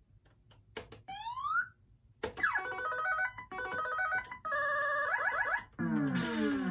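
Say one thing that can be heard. Arcade game music and electronic beeps play.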